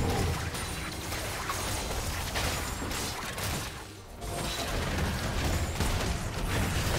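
Magic spells blast and crackle in a busy fight between game characters.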